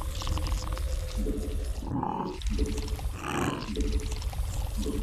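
Video game battle sounds play, with repeated electronic tones and bursts of noise.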